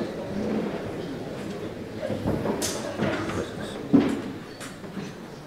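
A crowd murmurs quietly in a large room.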